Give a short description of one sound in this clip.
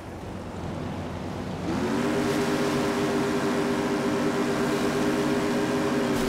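Water splashes against a moving boat hull.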